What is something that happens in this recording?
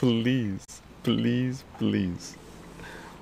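An elderly man speaks cheerfully and close up.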